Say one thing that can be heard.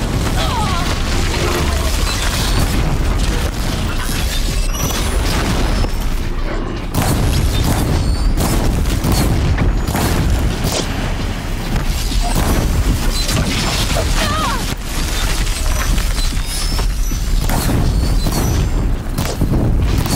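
A large robotic beast roars and clanks in a game battle.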